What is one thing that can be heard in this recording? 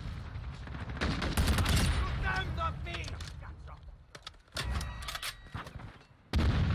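A gun fires.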